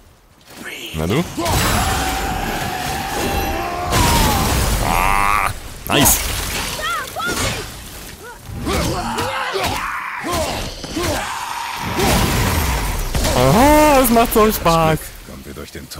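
An axe strikes and slashes with heavy metallic impacts.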